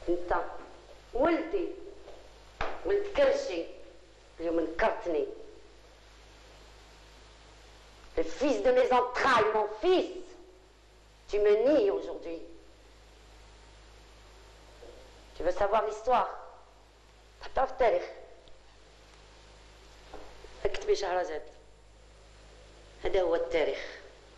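A woman speaks with emotion, in short bursts with pauses.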